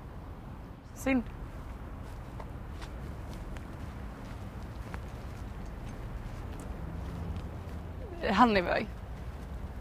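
A young woman speaks in short bursts nearby.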